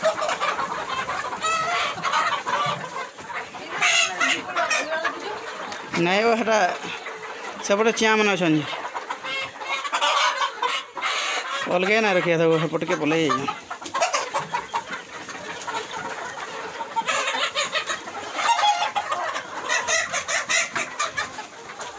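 Many chickens cluck and squawk close by.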